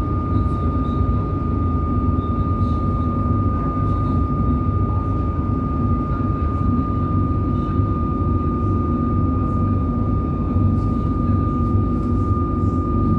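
A steady high whine runs from the train's motors.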